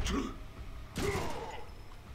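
A gun fires a shot.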